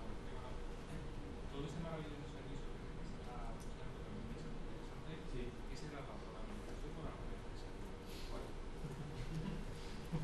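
A man asks a question calmly through a microphone in a reverberant hall.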